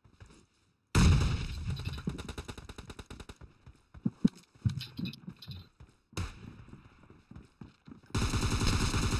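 Rapid rifle shots crack in quick bursts.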